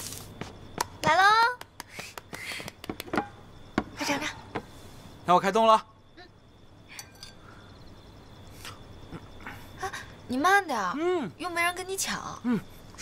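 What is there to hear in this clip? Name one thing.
A young woman speaks in a lively, playful voice.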